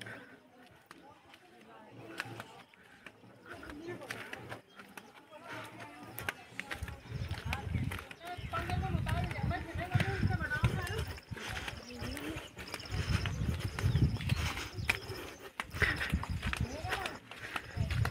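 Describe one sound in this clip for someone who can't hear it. Footsteps scuff on a stone path nearby.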